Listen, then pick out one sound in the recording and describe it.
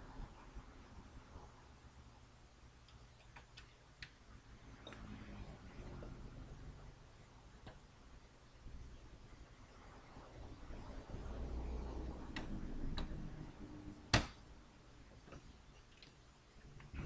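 Metal parts click and tap as a console casing is handled.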